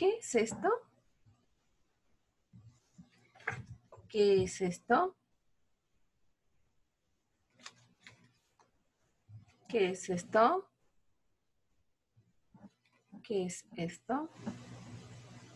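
A woman speaks clearly and slowly close to a microphone, pausing between words.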